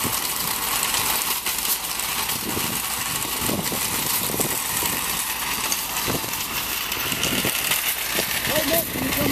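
Shopping cart wheels rattle over asphalt.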